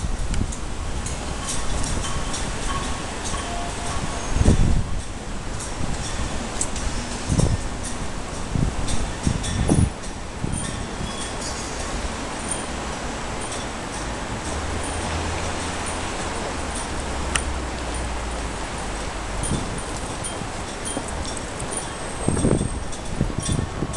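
A crowd murmurs softly in the distance, outdoors.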